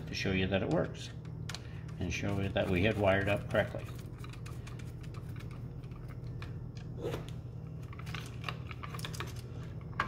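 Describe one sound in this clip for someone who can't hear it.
A screwdriver scrapes and clicks against a metal screw terminal.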